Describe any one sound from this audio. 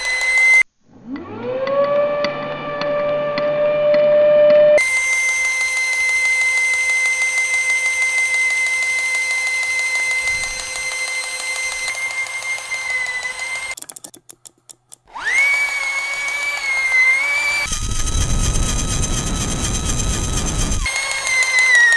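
A small toy motor whirs with a high, steady whine.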